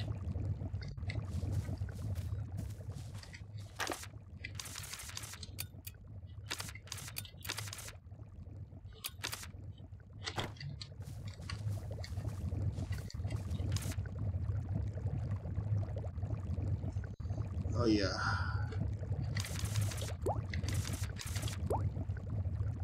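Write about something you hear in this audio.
Short interface clicks and blips sound as menus open and close.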